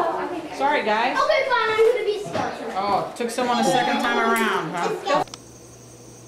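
A young child talks loudly and excitedly, close by.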